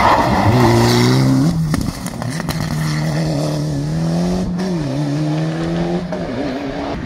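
A rally car engine revs hard as the car accelerates through a hairpin.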